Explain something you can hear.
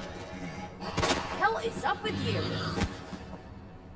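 A gun fires loudly in an echoing room.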